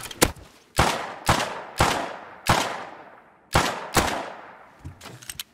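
Gunshots ring out one after another, each echoing away.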